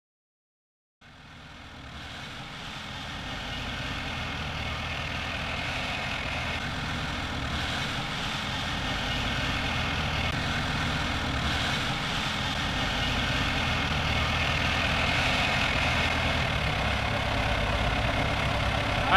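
A tank engine rumbles loudly and steadily nearby.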